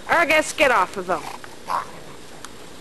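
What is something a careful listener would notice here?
A dog yips and squeals playfully at close range.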